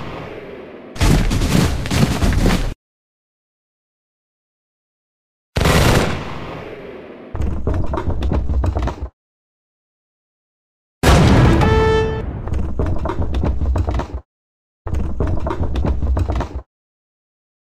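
Muskets crackle in rapid volleys.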